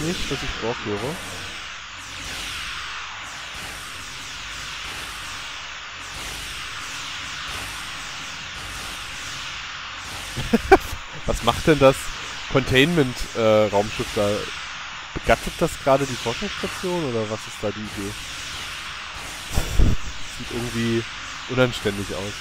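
Laser weapons zap rapidly in a space battle.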